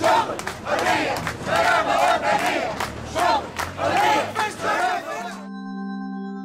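A crowd of men and women chants loudly in unison.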